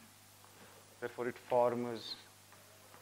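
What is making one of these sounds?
A young man speaks briefly, heard nearby.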